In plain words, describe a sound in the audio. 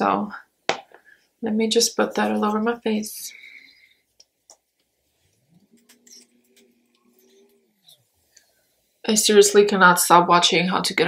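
A young woman talks calmly and close up.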